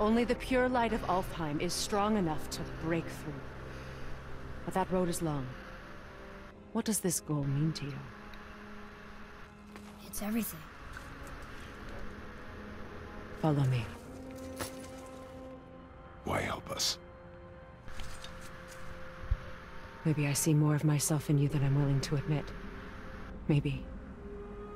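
A woman speaks calmly and earnestly.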